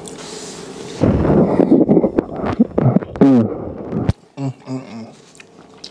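A man hums with pleasure while eating.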